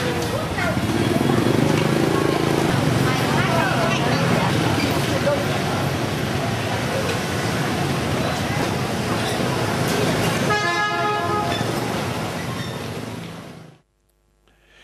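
Busy street traffic and motorbikes hum and buzz nearby.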